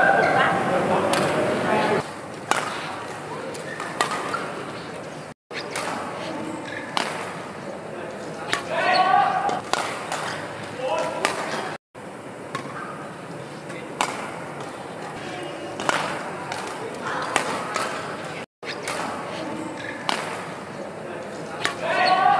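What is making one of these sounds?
A shuttlecock is struck with a racket with sharp pops in a large echoing hall.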